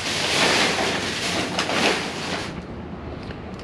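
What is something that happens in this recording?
Trash rustles and rattles as a pole scrapes through it.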